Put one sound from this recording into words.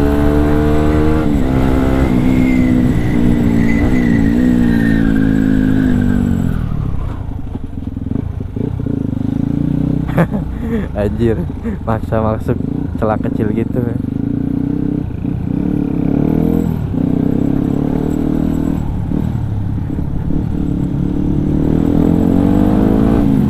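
A motorcycle engine revs and drones up close, rising and falling in pitch.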